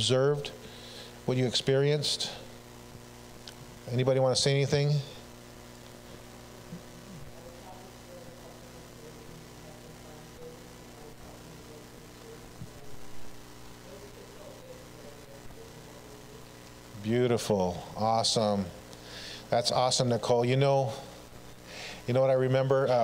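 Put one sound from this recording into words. A man speaks with long pauses through a microphone in a large echoing hall.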